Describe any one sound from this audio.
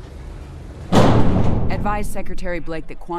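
Heavy metal doors slam shut with a loud boom.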